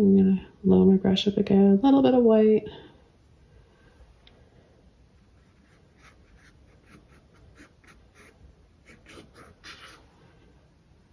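A paintbrush dabs and brushes against a canvas.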